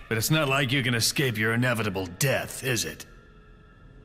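A man speaks in a low, firm voice.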